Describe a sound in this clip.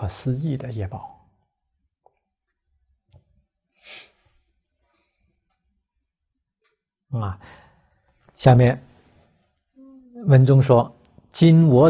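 A middle-aged man speaks calmly and close to a microphone, with pauses.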